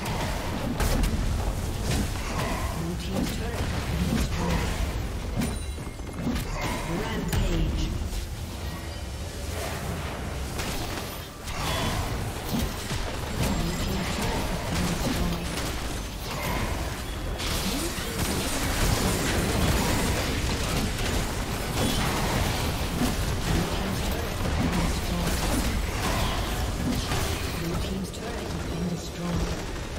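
Game spell effects crackle and boom in a fight.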